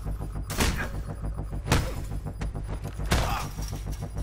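Heavy blows thud during a struggle.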